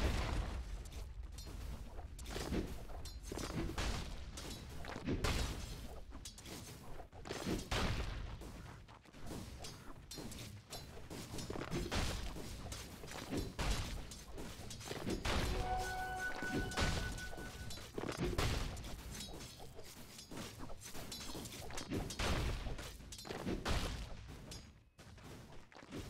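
Game characters clash with spell and weapon impacts.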